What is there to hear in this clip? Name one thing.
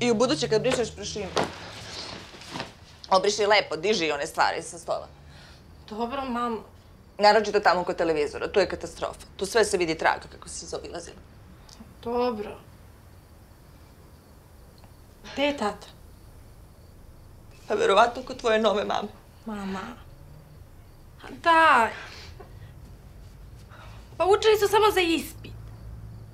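A young woman talks quietly and earnestly.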